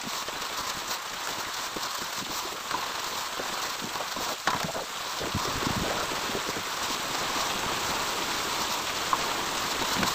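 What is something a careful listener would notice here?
A trowel scrapes plaster across a wall.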